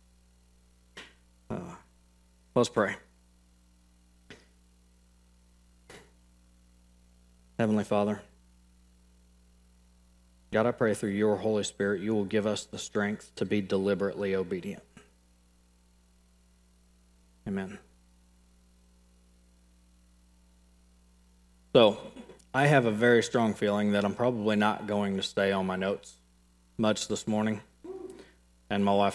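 A man speaks slowly through a microphone, with long pauses.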